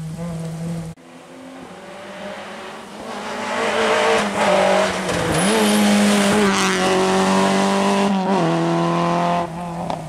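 A second rally car's engine roars as it approaches and races past.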